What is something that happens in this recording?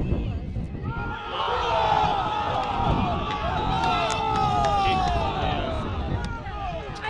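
A crowd of spectators cheers and shouts nearby outdoors.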